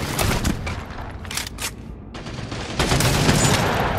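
A submachine gun fires in short, rapid bursts.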